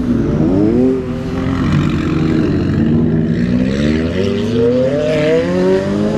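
A sports car accelerates away with a rising engine roar.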